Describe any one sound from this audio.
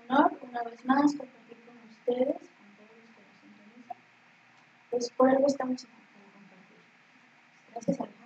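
A woman speaks through a microphone in bursts, with pauses between phrases.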